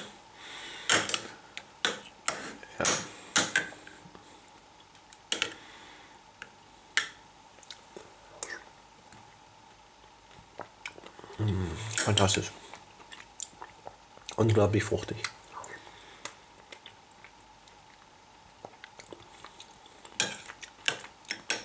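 A metal spoon clinks and scrapes against a glass bowl.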